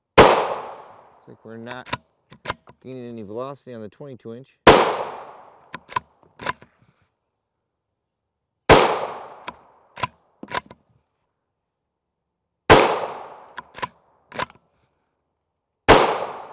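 A rifle fires loud shots outdoors, each followed by a rolling echo.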